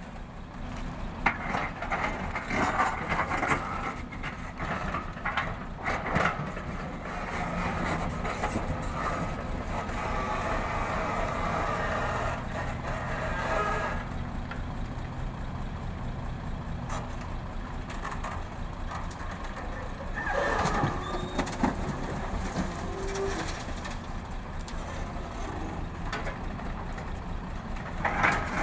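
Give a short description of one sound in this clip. An excavator engine drones and whines as it works.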